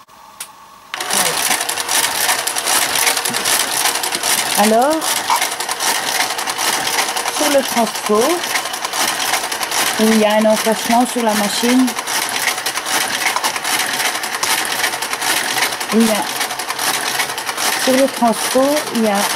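A knitting machine's motor runs with a steady, whirring clatter.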